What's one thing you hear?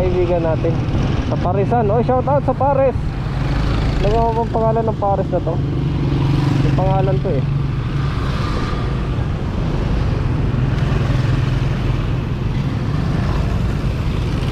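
A motorcycle engine hums steadily at low speed.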